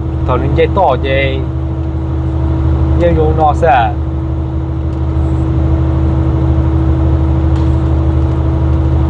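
A truck engine drones steadily inside the cab.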